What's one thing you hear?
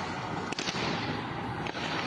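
A car drives past on a road outdoors.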